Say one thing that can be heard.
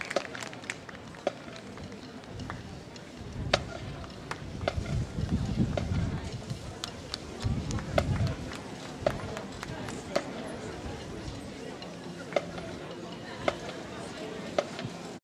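A drum taps a steady beat.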